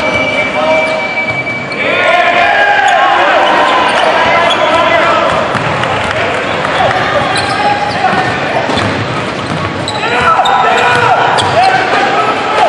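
A crowd in a large echoing hall cheers and murmurs.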